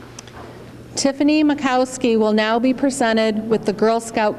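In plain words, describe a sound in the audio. A woman speaks into a microphone with a slight echo.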